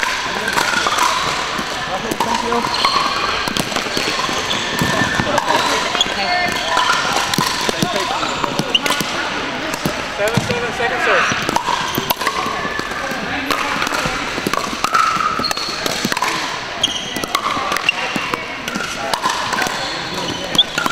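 Players' voices chatter and call out across a large echoing hall.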